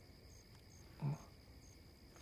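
A young man hums briefly, close by.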